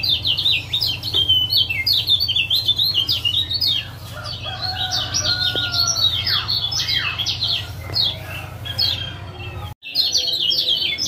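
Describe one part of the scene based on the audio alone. A caged songbird sings rapid, high chirping trills close by.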